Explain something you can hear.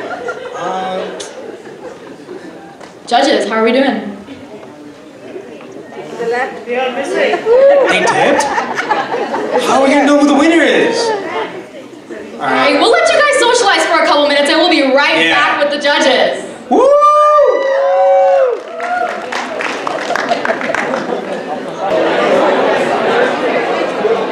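A young woman speaks loudly on a stage.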